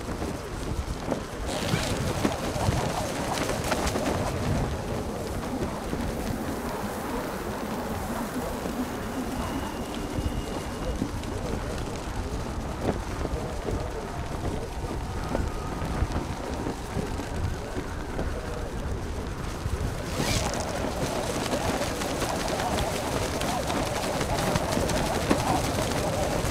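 Wind rushes steadily past a gliding paraglider.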